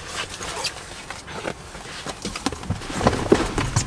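A bag thumps and rustles as a man puts it into a car.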